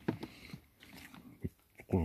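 A dog chews food.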